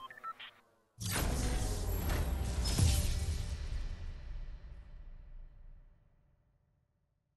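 A defeat jingle plays.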